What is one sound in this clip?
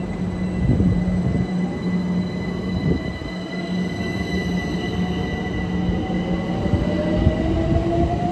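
An electric train slowly pulls away from a platform with a rising motor whine.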